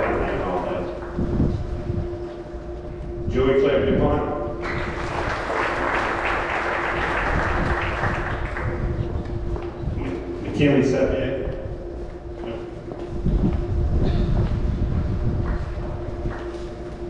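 A man announces through a loudspeaker in a large echoing hall.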